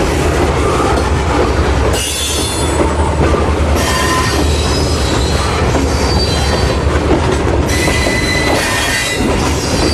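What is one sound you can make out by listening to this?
Steel wheels squeal and clatter on the rails.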